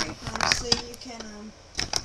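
A fingertip presses and rustles stiff paper.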